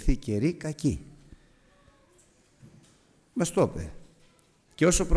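A middle-aged man speaks with animation into a microphone.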